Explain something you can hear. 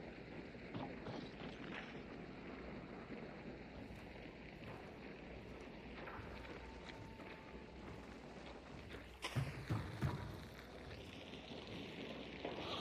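Footsteps creak and thud on wooden boards.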